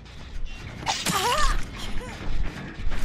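A blade swings through the air and strikes with a wet slash.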